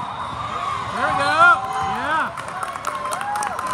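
A crowd cheers and shouts after a point.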